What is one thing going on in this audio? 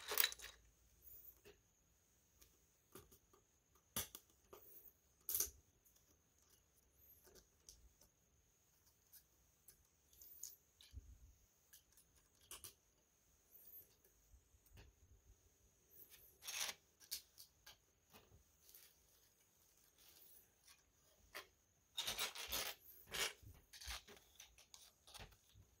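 Plastic toy bricks click as they snap together.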